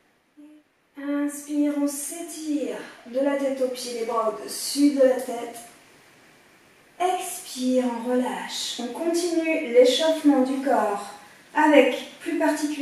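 A woman speaks calmly and clearly, close to a microphone.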